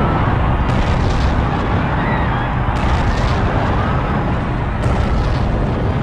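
A crowd of people screams while running.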